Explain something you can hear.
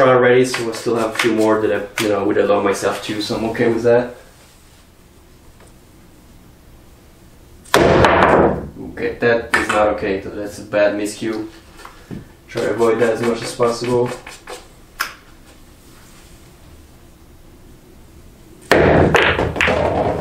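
A cue ball knocks against another ball on a table.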